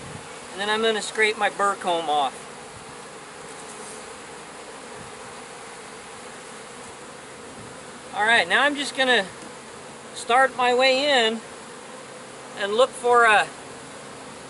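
A man speaks calmly in short phrases, close by, outdoors.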